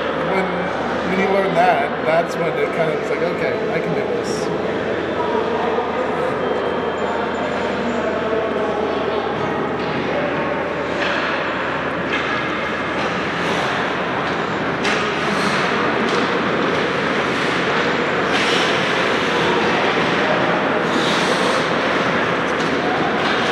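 Hockey sticks clack against the ice and each other.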